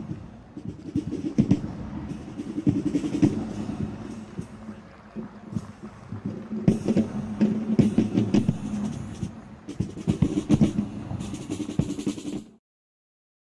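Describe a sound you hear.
A marching band of snare drums plays a steady rhythm outdoors.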